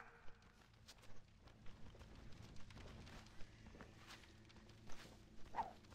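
Footsteps patter quickly on a path.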